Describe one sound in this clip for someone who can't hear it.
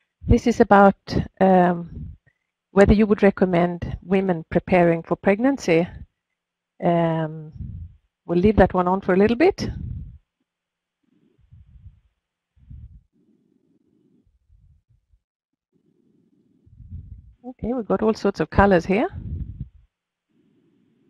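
An older woman speaks calmly through a headset microphone on an online call.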